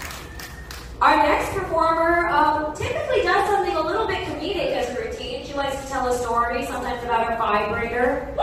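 A young woman sings into a microphone.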